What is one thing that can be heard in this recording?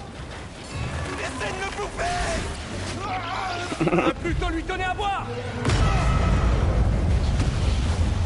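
A giant bellows loudly.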